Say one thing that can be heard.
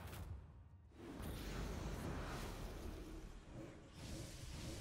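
A game's magic spell effect whooshes and rumbles loudly.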